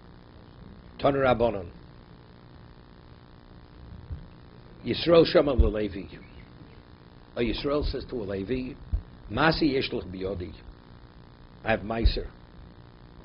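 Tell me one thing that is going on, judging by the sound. An elderly man speaks calmly into a microphone in short bursts with pauses.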